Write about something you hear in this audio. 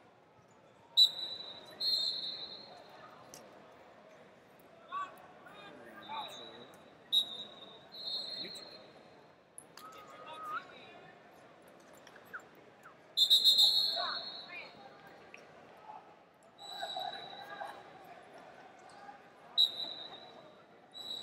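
Shoes squeak on a wrestling mat.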